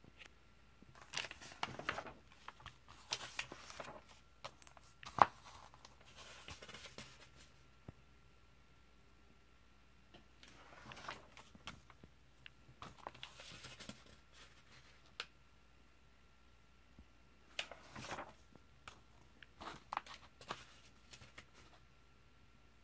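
Paper pages rustle and flap as they are turned.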